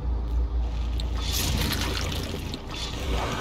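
A monster roars with a harsh, rasping growl.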